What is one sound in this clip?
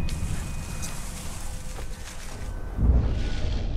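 Leaves rustle as someone moves through low bushes.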